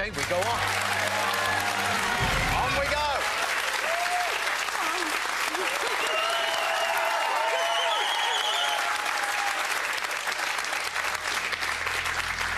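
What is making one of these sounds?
A large audience claps and applauds loudly.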